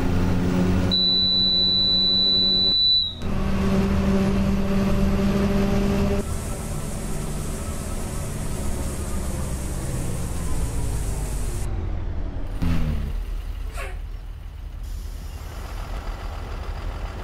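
A bus engine hums and drones steadily as the bus drives.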